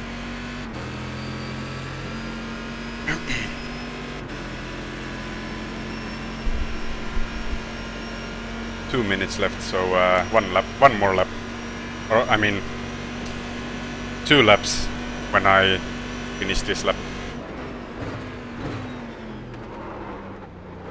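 A racing car engine drones steadily, shifting pitch as it changes gear.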